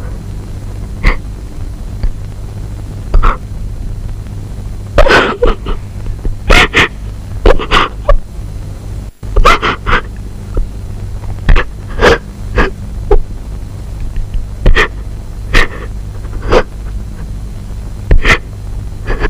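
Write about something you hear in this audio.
A young woman sobs and cries close by.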